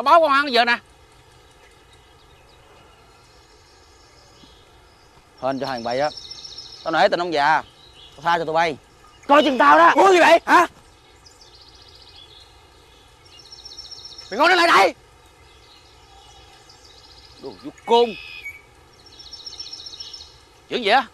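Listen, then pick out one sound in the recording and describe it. Adult men talk with animation close by.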